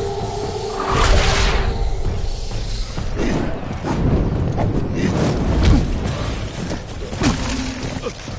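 A heavy hammer strikes with loud crashing blows.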